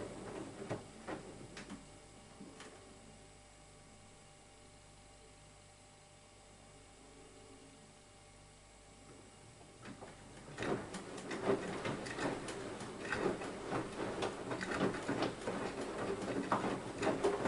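Water and laundry slosh and splash inside a washing machine drum.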